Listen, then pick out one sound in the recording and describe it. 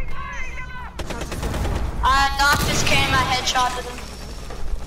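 A loud explosion blasts through a wall.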